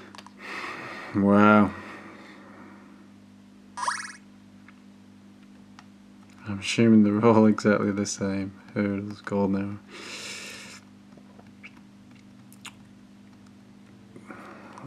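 A handheld game console gives short electronic beeps.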